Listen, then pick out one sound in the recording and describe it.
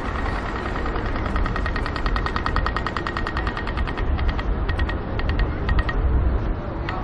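A pedestrian crossing signal ticks rapidly.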